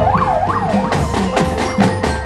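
A marching band beats drums.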